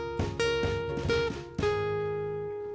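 A ukulele strums along on the last chord.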